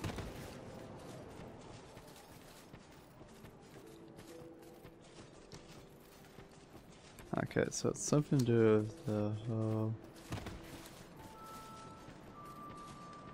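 Footsteps of an armoured figure crunch on dirt and stone.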